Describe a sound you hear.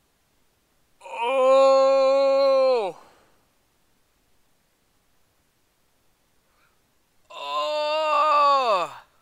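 A young woman lets out long, loud, drawn-out cries that fall in pitch at the end.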